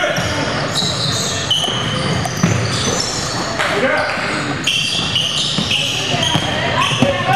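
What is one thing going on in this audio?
A crowd of spectators murmurs and calls out in an echoing gym.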